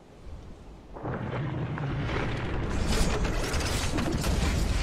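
Wind rushes loudly past as a game character glides down.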